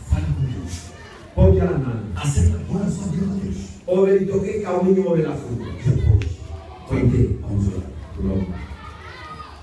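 A group of women sing loudly together close by.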